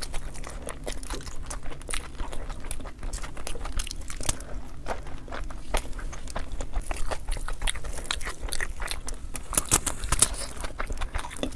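Fingers squish and rustle through rice close by.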